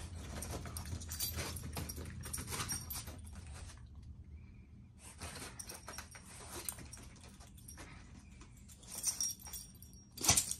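Small dogs growl playfully.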